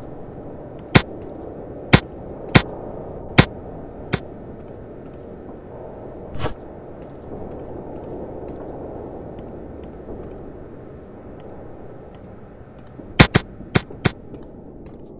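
Footsteps thud on a hollow floor.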